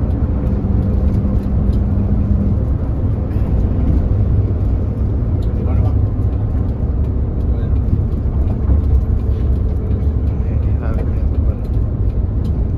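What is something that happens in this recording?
A large vehicle's engine rumbles steadily from inside the cab.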